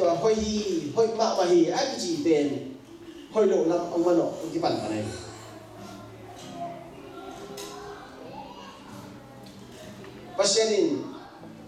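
A man speaks calmly into a microphone over loudspeakers in an echoing hall.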